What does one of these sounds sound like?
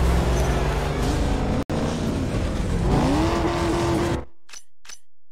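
A car engine rumbles loudly.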